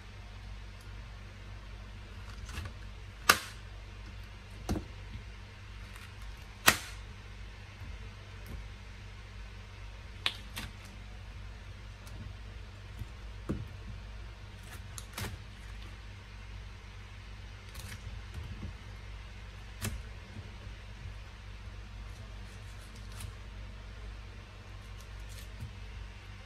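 A knife cuts through firm pineapple with soft crunches.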